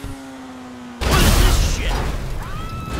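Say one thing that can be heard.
A car crashes with a loud bang and crunch of metal.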